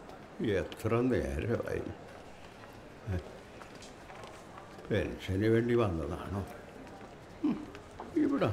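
A man speaks slowly and calmly nearby, in short phrases with pauses.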